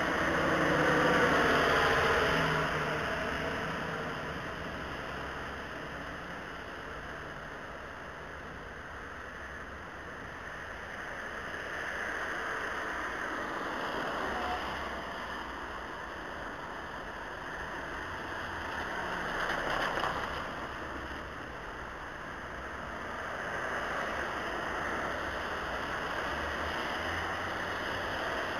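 Cars swish past on a wet road, their tyres hissing.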